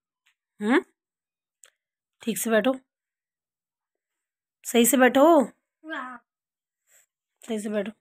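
A young boy speaks loudly and playfully in short bursts close by.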